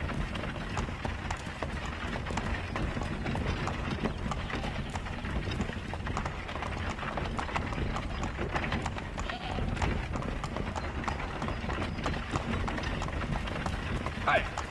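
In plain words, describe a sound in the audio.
Horse hooves clop steadily on a dirt road.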